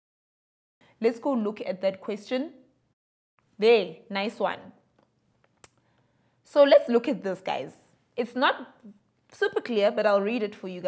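A young woman speaks calmly and clearly into a microphone.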